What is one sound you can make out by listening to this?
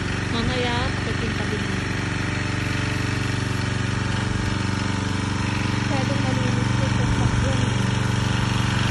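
A car engine idles with a steady, low rumbling exhaust.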